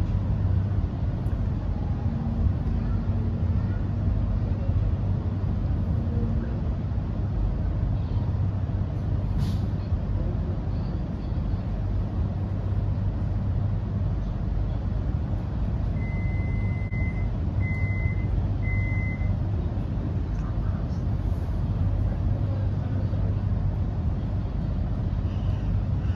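A train rolls slowly to a stop, heard from inside a carriage as a steady low rumble.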